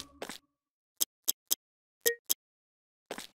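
Short menu clicks beep a few times.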